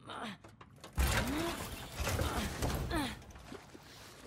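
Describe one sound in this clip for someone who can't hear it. A fist bangs hard on a glass door.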